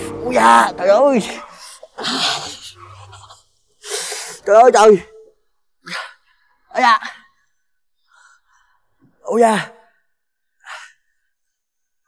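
A young man sobs and wails loudly nearby.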